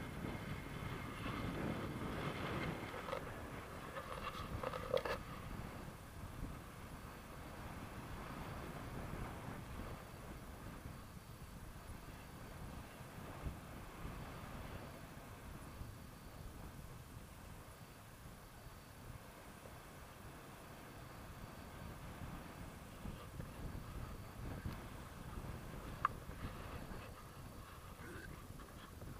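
Wind rushes steadily past a microphone outdoors.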